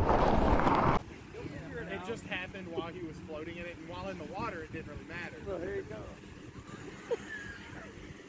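Small waves lap gently at a shore.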